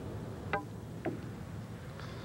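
Billiard balls knock together with a short click.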